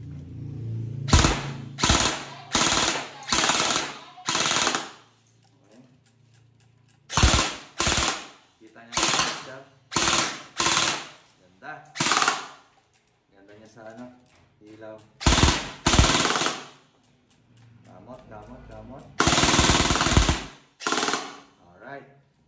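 Drums and cymbals crash in loud bursts.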